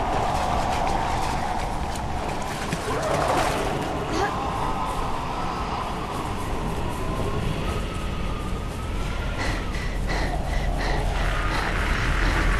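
Footsteps crunch quickly on sand and dirt.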